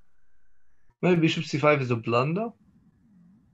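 A man talks calmly through an online call.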